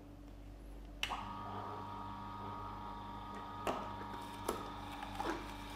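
A juicer motor hums steadily.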